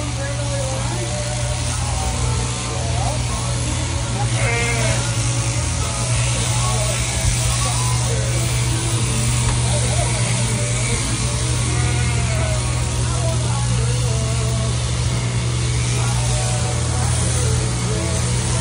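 Electric shears buzz steadily as they clip through a sheep's fleece.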